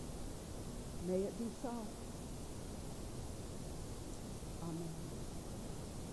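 A woman speaks calmly into a microphone, with long pauses.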